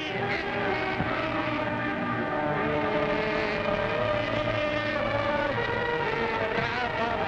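An orchestra plays slow, sustained music.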